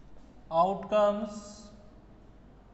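A man speaks briefly in a calm lecturing voice.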